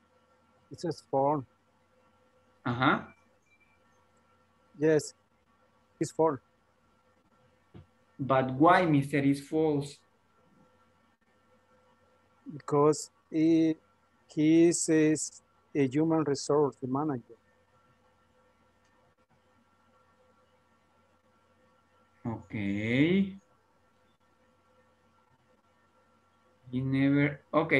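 A young woman speaks calmly in short phrases over an online call.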